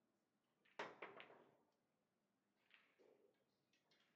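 A cue sharply strikes a billiard ball.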